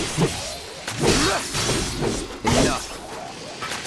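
A sword clashes with metal in sharp, ringing strikes.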